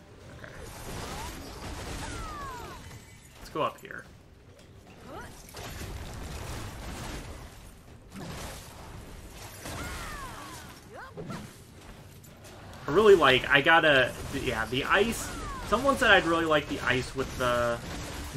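Game combat sounds clash and whoosh.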